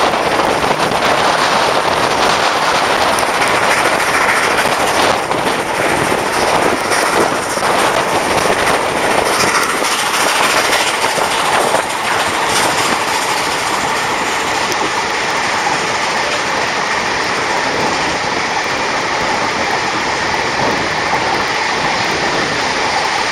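A train rumbles and clatters steadily along the track.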